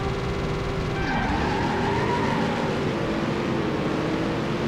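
A car engine revs and its pitch rises.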